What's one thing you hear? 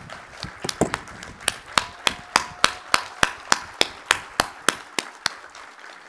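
An elderly man claps his hands.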